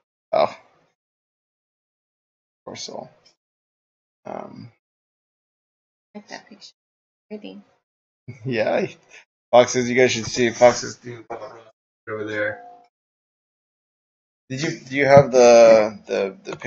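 A young man talks with animation, heard close through a microphone.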